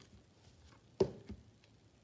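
A book is closed with a thump.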